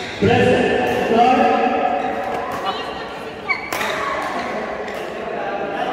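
Rackets strike a shuttlecock in an echoing hall.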